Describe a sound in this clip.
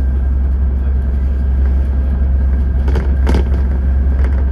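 A truck drives past the other way.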